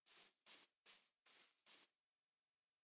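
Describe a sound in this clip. Footsteps tap softly on a hard surface.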